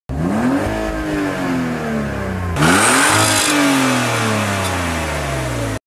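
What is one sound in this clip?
A car engine revs up hard twice, each time winding slowly back down.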